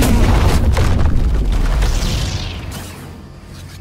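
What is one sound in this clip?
A large beast roars loudly and groans.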